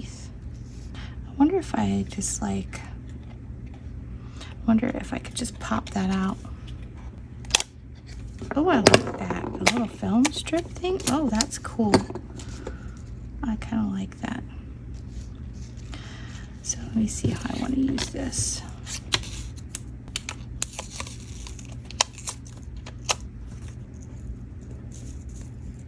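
Paper and card rustle as hands handle them.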